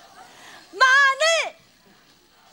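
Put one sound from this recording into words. A middle-aged woman shouts a word loudly and excitedly into a microphone.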